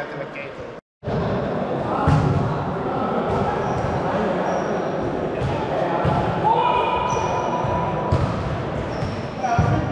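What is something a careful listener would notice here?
A young woman speaks cheerfully in an echoing hall.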